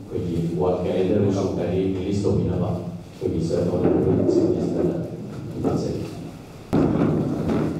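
A man speaks into a microphone over a loudspeaker, addressing a room.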